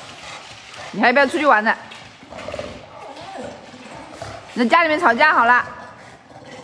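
A dog whines in high, wavering cries.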